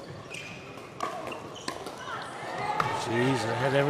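Paddles strike a plastic ball with sharp pops in an echoing hall.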